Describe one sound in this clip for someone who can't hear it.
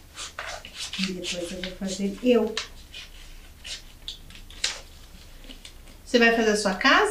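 A young woman speaks calmly into a nearby microphone.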